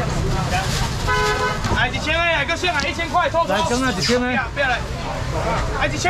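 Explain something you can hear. A young man calls out loudly to customers.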